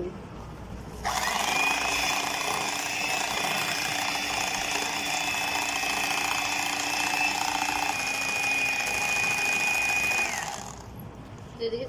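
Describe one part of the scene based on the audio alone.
An electric hand mixer whirs steadily as it beats a thick batter.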